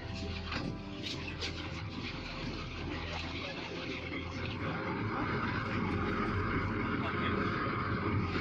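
Water rushes against a boat's hull.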